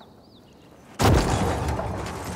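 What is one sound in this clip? A heavy thud lands after a jump.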